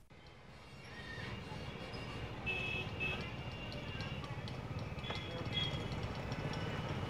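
Car horns honk now and then.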